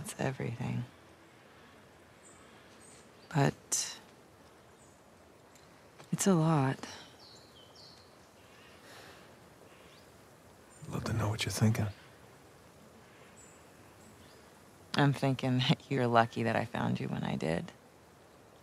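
A young woman speaks softly and warmly, close by.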